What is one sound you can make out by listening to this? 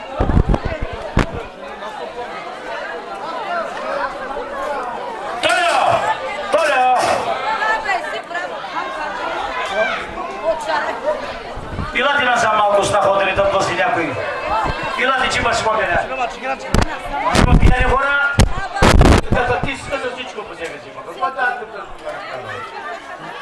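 A crowd of men, women and children chatter nearby.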